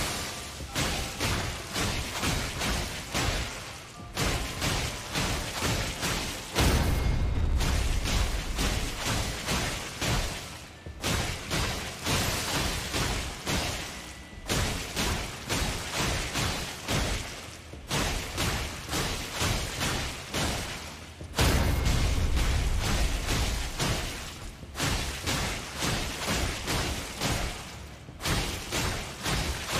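Blades clash and strike in quick blows.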